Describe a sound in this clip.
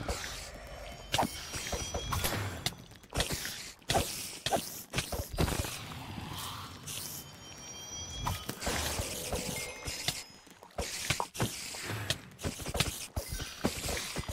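Sword blows land on creatures in quick, sharp hits.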